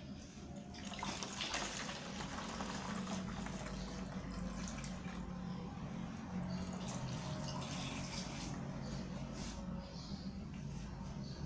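Water pours through a funnel into a plastic bottle.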